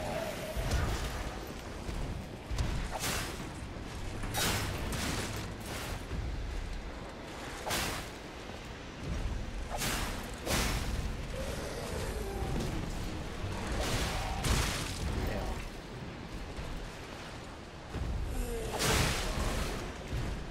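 Metal weapons clash and clang sharply again and again.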